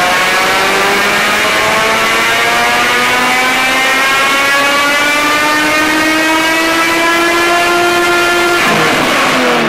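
A car engine roars at high revs, climbing steadily in pitch.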